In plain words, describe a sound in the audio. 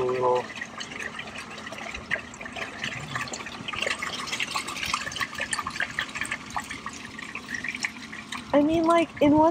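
A corrugated plastic hose crinkles and rustles under squeezing hands.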